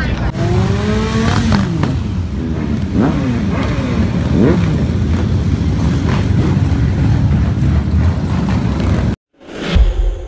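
Motorcycle engines roar and rev loudly as they pass close by.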